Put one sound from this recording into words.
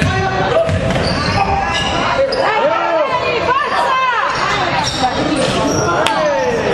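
Sneakers squeak sharply on a hardwood floor in a large echoing hall.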